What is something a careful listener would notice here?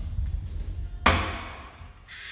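A flush lever clicks down.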